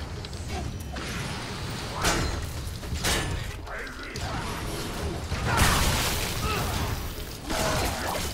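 A sword slashes with a whoosh.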